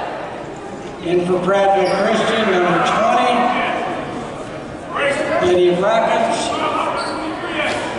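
A crowd of spectators cheers and chants in an echoing gym.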